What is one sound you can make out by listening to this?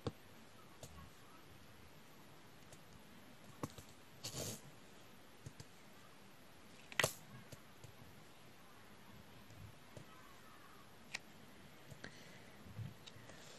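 A pen taps small plastic beads into place with faint clicks.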